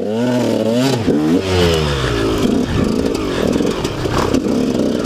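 A dirt bike engine revs and roars up close, rising and falling in pitch.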